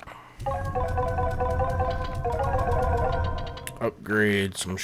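A bright chime tinkles in a video game.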